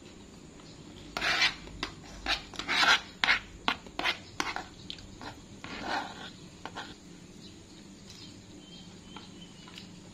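A woman chews food close by.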